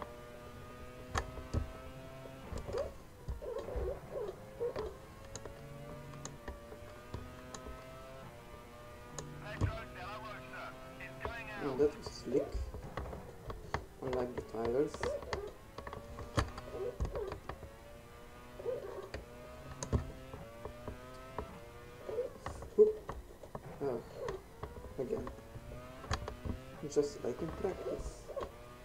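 A racing car engine whines at high pitch, rising and dropping with each gear change.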